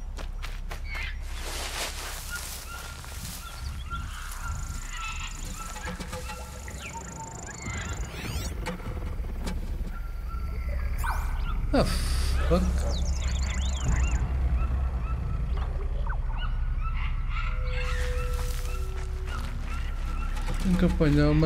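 Footsteps rustle through tall grass and bushes.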